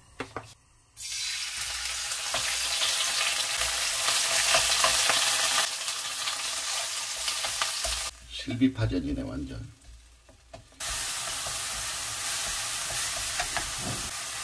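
Food sizzles loudly in hot oil in a frying pan.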